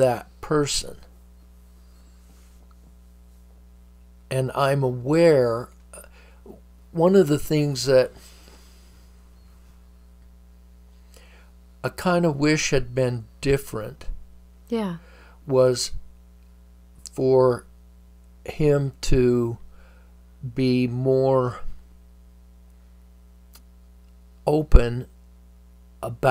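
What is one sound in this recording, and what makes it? An elderly man speaks calmly into a nearby microphone, with pauses.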